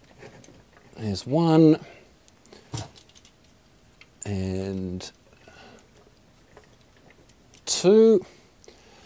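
Plastic toy parts click and rattle as they are handled.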